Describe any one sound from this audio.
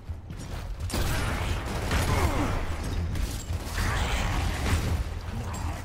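Gunfire bursts rapidly nearby.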